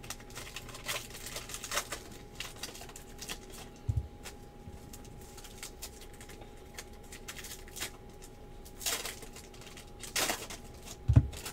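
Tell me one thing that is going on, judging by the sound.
A plastic card wrapper crinkles and rustles in someone's hands.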